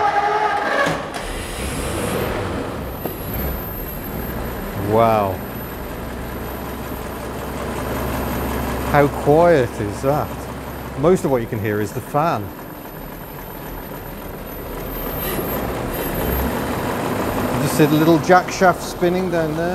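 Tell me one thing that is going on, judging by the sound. A large car engine idles with a steady rumble.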